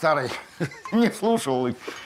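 An older man laughs heartily.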